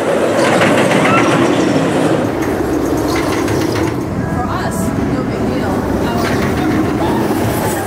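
Riders scream and cheer on a passing roller coaster.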